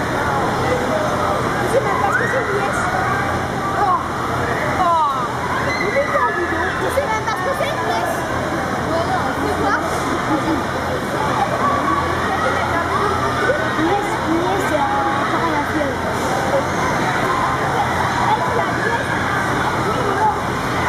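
Many children shout and chatter throughout a large echoing hall.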